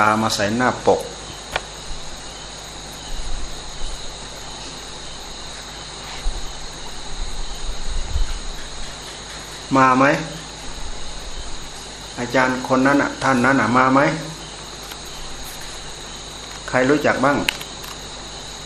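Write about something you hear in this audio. An elderly man speaks calmly, with long pauses.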